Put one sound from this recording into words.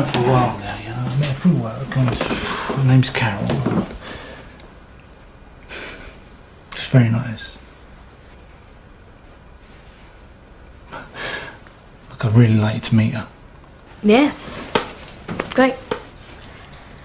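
A man speaks quietly and intimately, close by.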